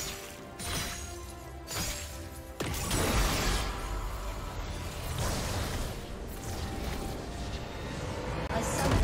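Magic spells crackle and boom in a battle.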